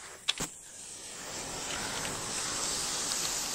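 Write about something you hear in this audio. Flames roar and crackle outdoors.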